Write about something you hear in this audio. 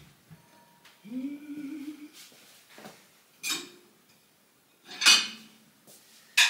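Dishes clink and clatter as they are put away.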